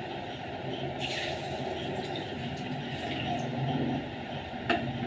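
Milk pours into a steel cup.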